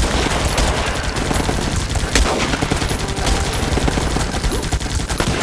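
Guns fire rapidly in a dense battle.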